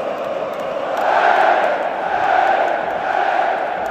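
A large crowd chants loudly in unison.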